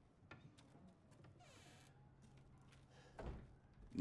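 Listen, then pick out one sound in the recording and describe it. Wooden cabinet doors thud shut.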